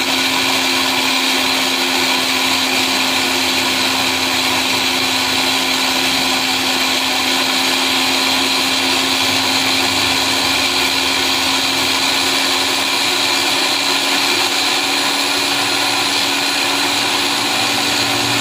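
An electric blender motor whirs steadily and loudly.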